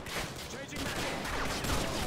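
An assault rifle fires bursts in a video game.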